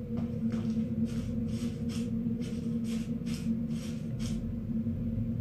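Footsteps tap on stone at an even pace.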